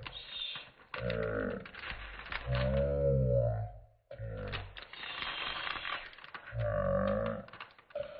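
Plastic sheeting crinkles and rustles under hands.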